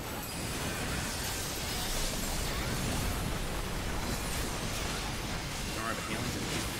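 Magic spells crackle and boom in a fierce battle.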